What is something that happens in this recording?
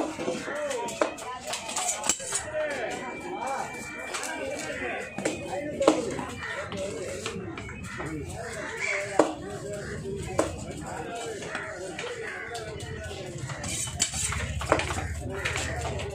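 A knife scrapes and knocks against a fish on a wooden block.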